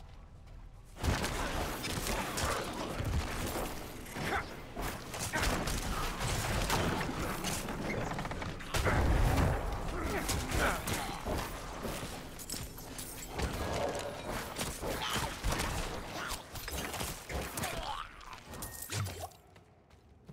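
Weapons clash and spells burst in quick, busy bursts.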